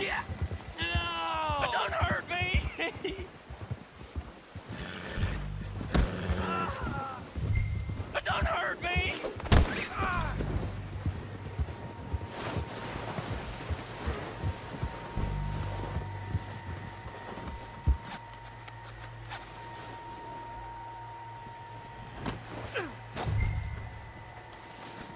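Wind blows across open snow.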